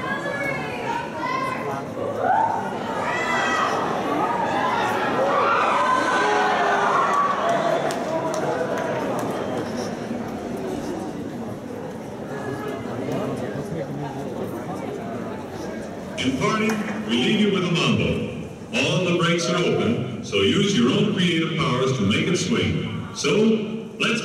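An audience murmurs and chatters in a large hall.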